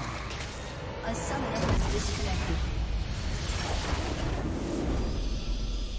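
A crystal structure shatters with a crashing burst.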